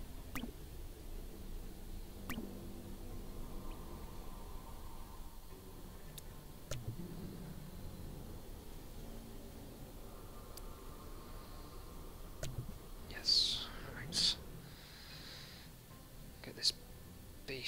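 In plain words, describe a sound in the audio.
Short electronic clicks and blips sound now and then.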